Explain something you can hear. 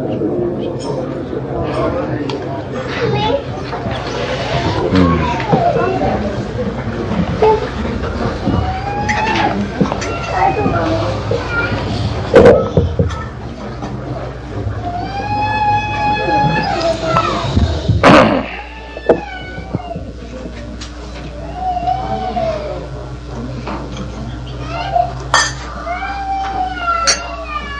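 An elderly man lectures calmly into a microphone.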